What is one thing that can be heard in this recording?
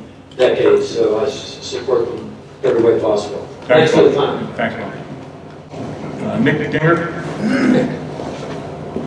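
An older man speaks loudly and with animation from across a room.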